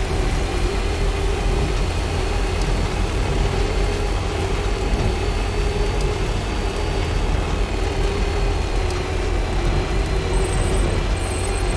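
Rain patters steadily all around.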